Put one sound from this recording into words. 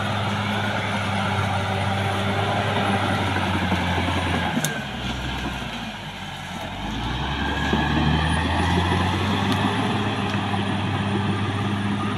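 A bulldozer's diesel engine rumbles steadily nearby, dipping briefly as the engine eases off and then revving again.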